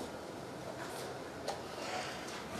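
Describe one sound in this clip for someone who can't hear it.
A wooden chess piece is set down on a wooden board.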